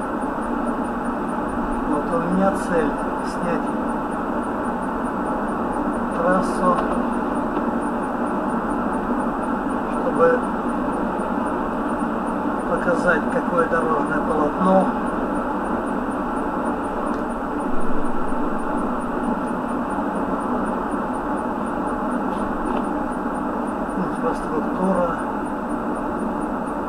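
Tyres hum steadily on a road from inside a moving car.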